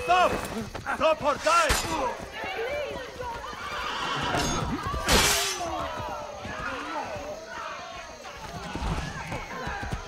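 Swords clash with sharp metallic clangs.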